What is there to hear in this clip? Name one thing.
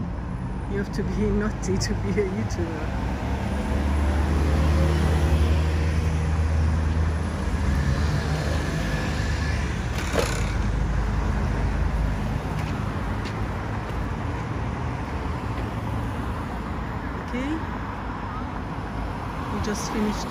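Traffic hums steadily in the city.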